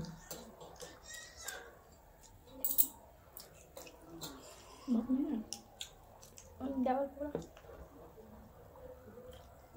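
A young woman chews and smacks her lips close by.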